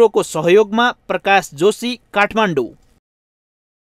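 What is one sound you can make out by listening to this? A young man speaks clearly and close to a microphone.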